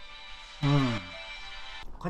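A spoon scrapes against a metal bowl.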